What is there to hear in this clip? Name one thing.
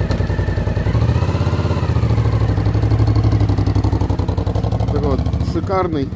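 A motorcycle engine revs up as the motorcycle rides away.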